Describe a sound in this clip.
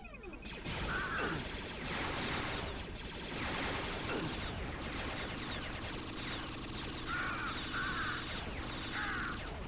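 Blaster shots fire in rapid bursts.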